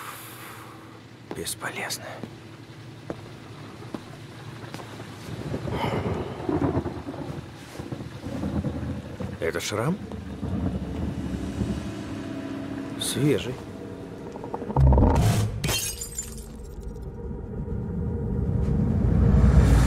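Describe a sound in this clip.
A man speaks in a low, stern voice nearby.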